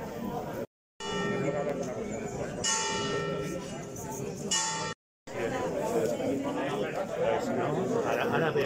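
A crowd of people murmurs in the background outdoors.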